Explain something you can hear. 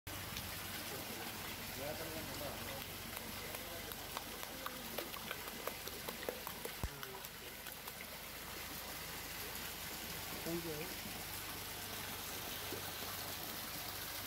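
Water splashes and churns in a tank.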